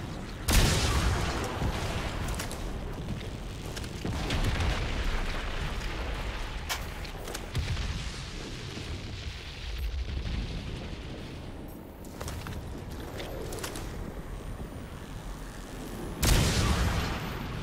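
A sniper rifle fires with a loud boom.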